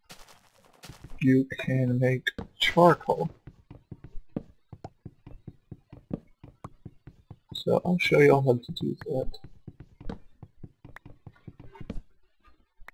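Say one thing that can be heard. Soft knocks of wood being chopped repeat quickly and steadily.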